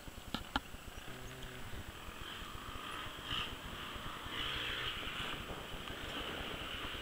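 A small motorbike engine hums in the distance.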